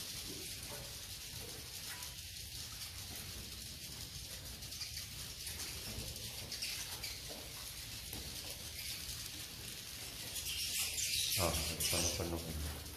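Many swiftlets chirp and twitter in a small enclosed space.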